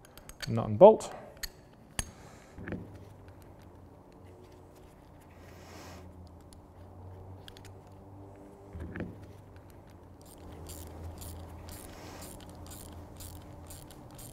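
Small metal parts click and tap together.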